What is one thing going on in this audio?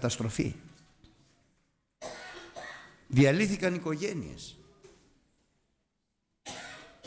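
A middle-aged man speaks with animation into a microphone, in bursts with pauses.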